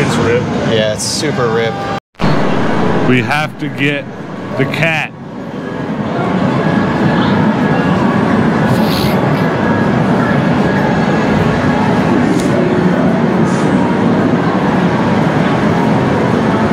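Arcade machines play music and chime all around.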